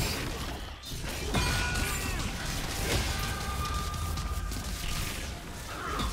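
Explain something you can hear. Video game combat sound effects clash and crackle with magic blasts.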